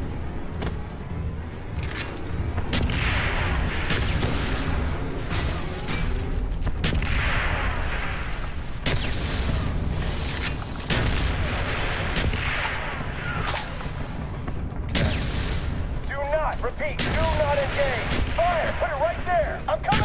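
Gunfire and explosions boom and crack.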